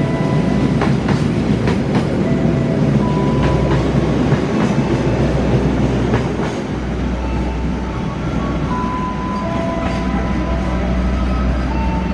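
A train's brakes squeal in high tones.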